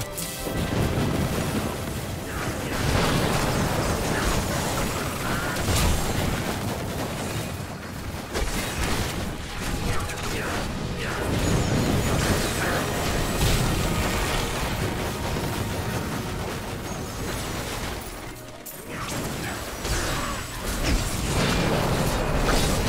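Fiery blasts and explosions crackle and boom again and again.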